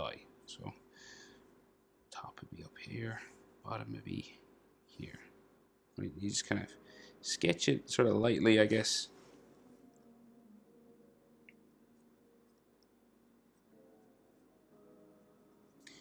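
A felt-tip marker squeaks across a drawing surface.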